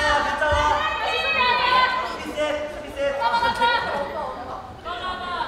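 Young women shout and cheer in a large echoing hall.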